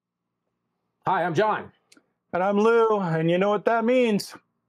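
A man speaks loudly and with animation over an online call.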